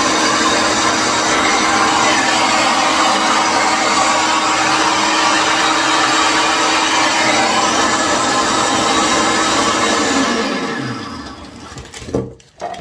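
A blender whirs loudly and winds down.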